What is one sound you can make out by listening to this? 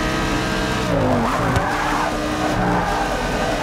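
Tyres squeal through a corner.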